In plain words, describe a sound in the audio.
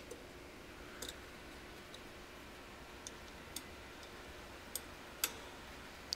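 Objects knock and click as a hand handles them nearby.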